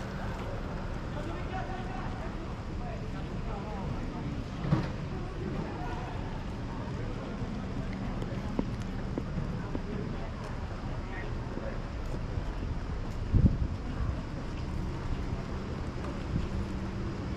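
A few adults chat quietly nearby outdoors.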